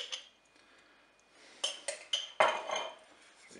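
A metal spoon scrapes and taps against a pot.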